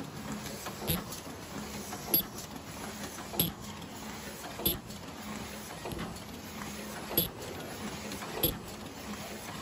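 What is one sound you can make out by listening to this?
A machine hums and whirs steadily.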